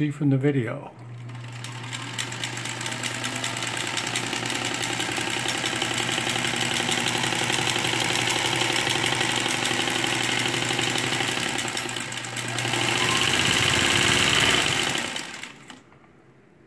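A sewing machine motor whirs steadily.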